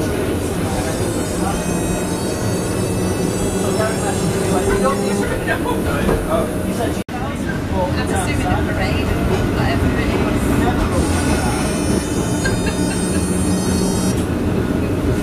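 A tram's electric motor whines as it speeds up.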